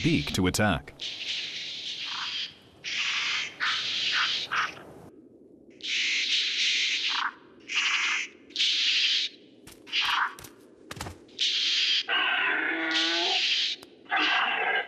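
Small dinosaurs hiss in sharp, repeated bursts.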